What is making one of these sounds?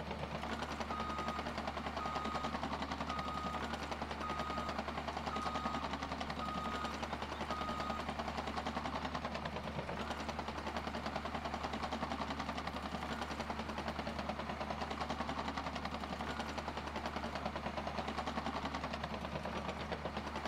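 A bulldozer engine rumbles steadily.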